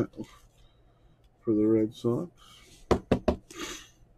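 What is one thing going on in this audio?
A trading card slides into a plastic sleeve.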